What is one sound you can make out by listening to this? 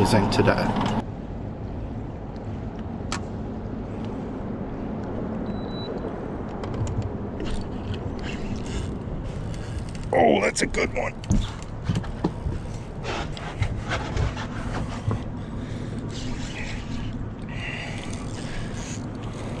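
Water laps softly against a boat.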